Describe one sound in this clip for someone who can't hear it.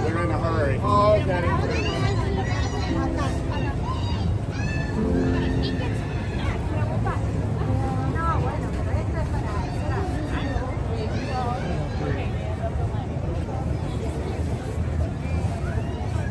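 A dense crowd murmurs and chatters all around outdoors.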